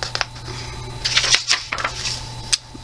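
A page of a book turns with a soft papery rustle.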